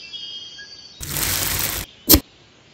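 Sand pours and patters onto metal.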